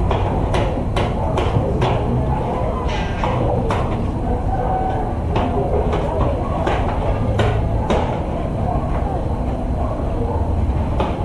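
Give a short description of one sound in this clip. Two wrestlers' bodies shift and scuff against a padded mat.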